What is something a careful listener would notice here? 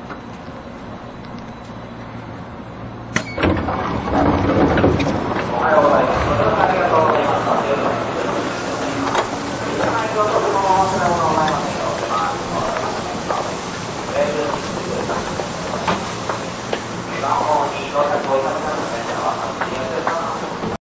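A stopped train hums steadily.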